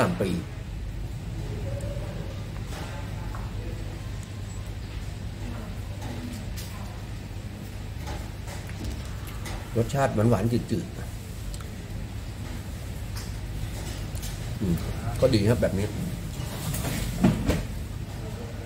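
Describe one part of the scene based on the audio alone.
A middle-aged man speaks calmly, close by.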